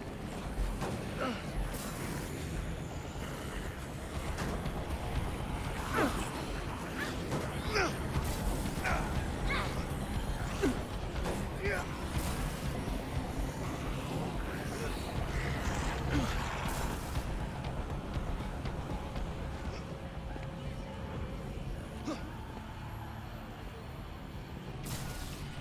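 Flames crackle and hiss.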